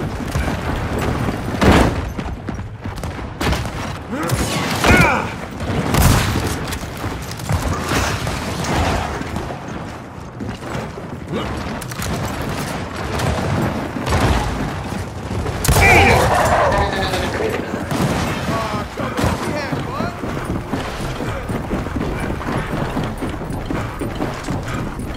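Heavy boots thud on a hard floor.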